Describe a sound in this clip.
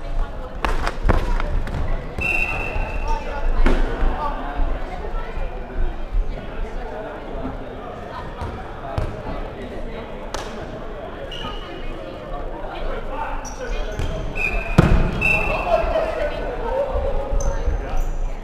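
Players shout and call out to one another.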